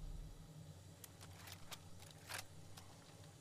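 A rifle's metal parts click and rattle as it is handled.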